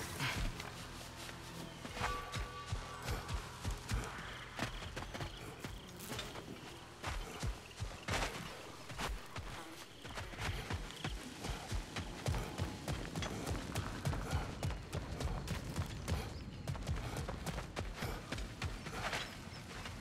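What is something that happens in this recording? Heavy footsteps thud quickly on earth and stone.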